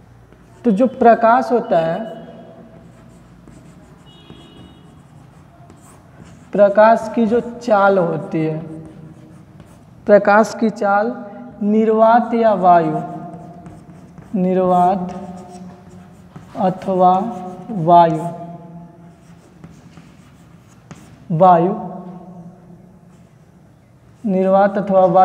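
A young man speaks calmly and clearly in short phrases, close by.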